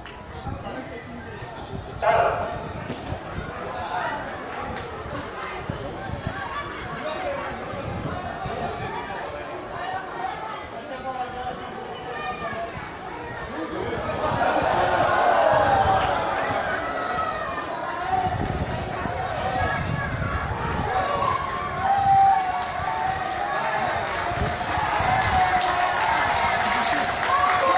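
A large outdoor crowd murmurs and chatters.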